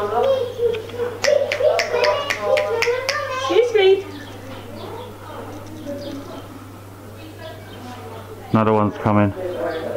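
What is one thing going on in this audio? A small monkey chirps and squeaks in high, shrill calls.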